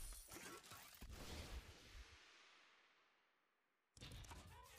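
A bright shimmering whoosh swells and slowly fades away.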